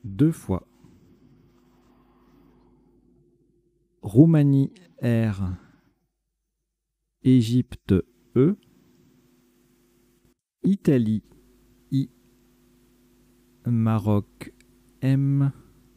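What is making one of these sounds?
A man speaks calmly and slowly into a close microphone, pausing between short phrases.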